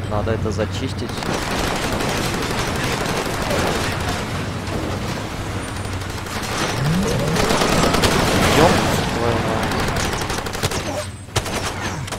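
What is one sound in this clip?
A vehicle engine roars while driving over rough ground.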